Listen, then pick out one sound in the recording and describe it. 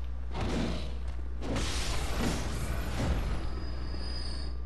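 Weapons swing and strike with heavy, rushing whooshes.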